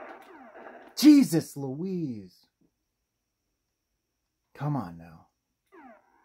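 A video game explosion bursts loudly from a television speaker.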